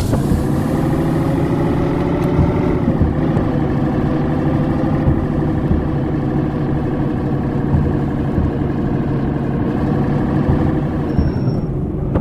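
A heavy truck engine drones steadily, its pitch dropping now and then as it changes gear.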